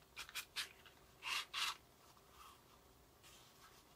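A small cardboard box taps and clicks as it is handled.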